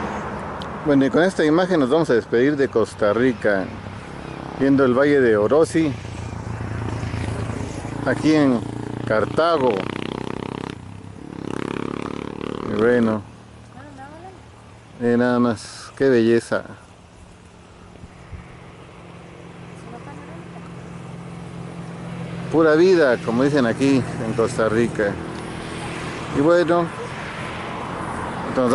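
Wind blows outdoors, rustling tall grass.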